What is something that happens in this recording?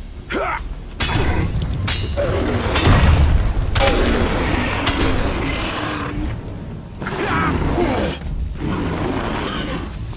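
Heavy blows thud and clang.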